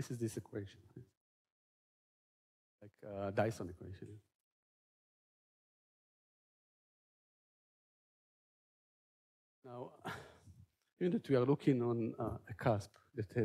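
A man lectures calmly through a microphone, with pauses.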